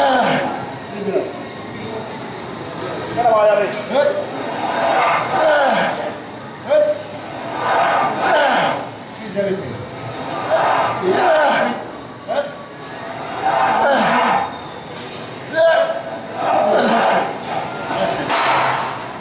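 A man strains and grunts loudly with effort.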